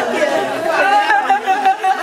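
A girl speaks loudly with animation close by.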